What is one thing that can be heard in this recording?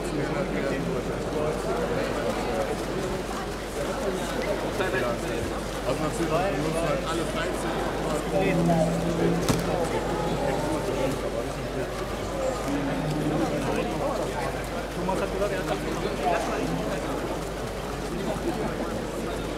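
A crowd of spectators murmurs in a large indoor hall.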